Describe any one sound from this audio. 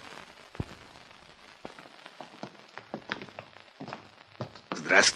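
Footsteps of men walk across a hard floor.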